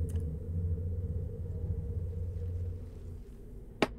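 A woman sips a drink from a mug close to a microphone.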